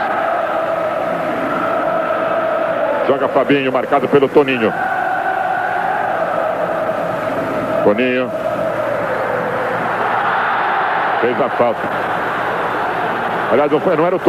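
A large stadium crowd roars and chants steadily in a wide echoing space.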